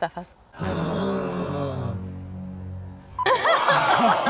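A young woman exclaims loudly in surprise.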